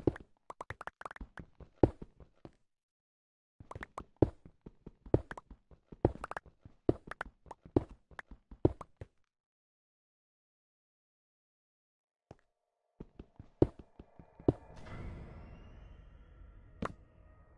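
Footsteps thud on stone in quick succession.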